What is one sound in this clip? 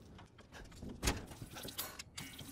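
A locked door handle rattles.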